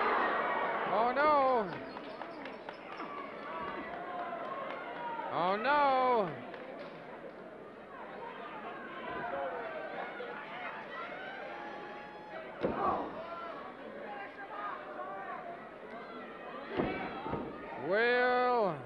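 Men in a crowd shout and yell loudly.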